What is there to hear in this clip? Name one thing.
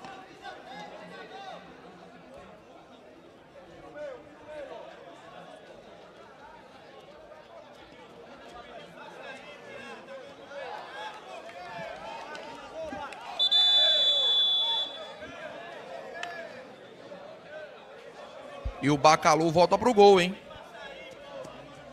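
A large crowd chatters and shouts in the distance outdoors.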